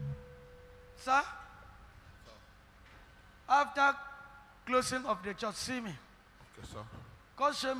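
A man speaks loudly and with animation through a microphone, in a reverberant hall.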